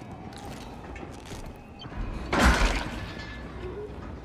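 Footsteps clang on metal walkways.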